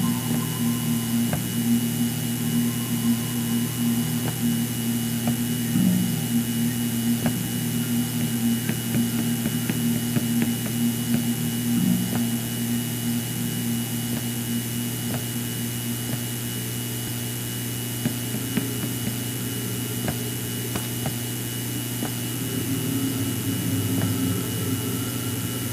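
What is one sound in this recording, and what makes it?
Footsteps thud on hollow wooden boards.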